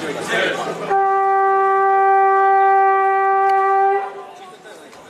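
A scoreboard buzzer blares loudly and steadily in an echoing hall.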